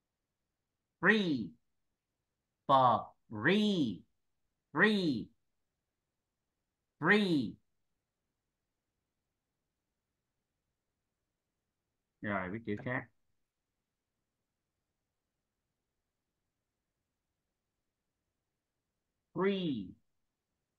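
A woman pronounces single words slowly and clearly over an online call.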